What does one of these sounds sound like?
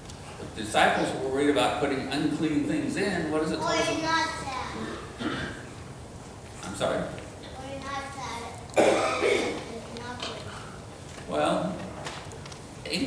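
An elderly man speaks calmly and warmly nearby.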